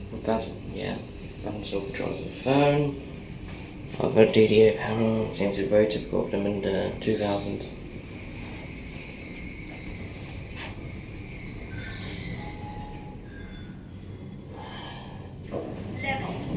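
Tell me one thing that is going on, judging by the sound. An elevator hums steadily as it travels.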